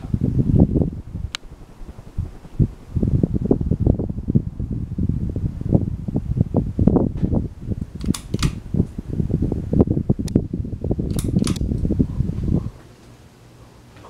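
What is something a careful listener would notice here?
A ceiling fan whirs and its blades buffet the air close by.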